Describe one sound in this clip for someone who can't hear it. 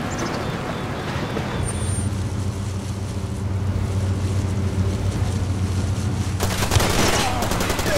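A car engine rumbles steadily while driving.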